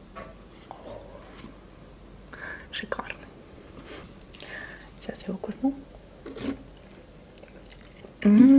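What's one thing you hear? A crisp tortilla crackles and crunches in a woman's hands close up.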